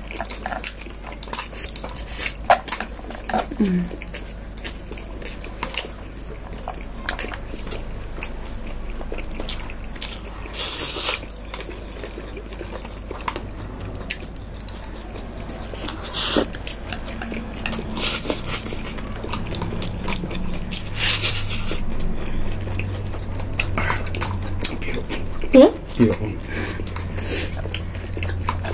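Chopsticks and forks clink against bowls.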